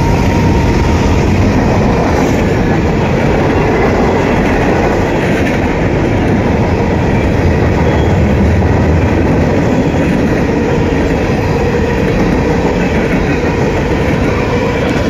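Freight car wheels clatter and squeal on the rails.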